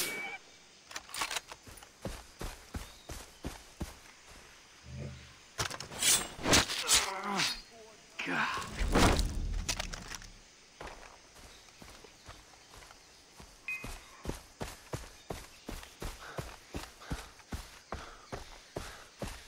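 Footsteps crunch on dry grass and leaves.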